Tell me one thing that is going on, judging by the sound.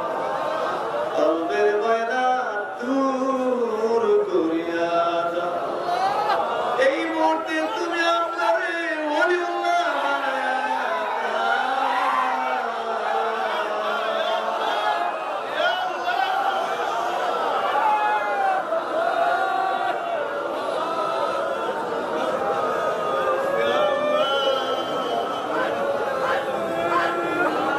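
A man chants in a loud, melodic voice into a microphone over a loudspeaker, with echo.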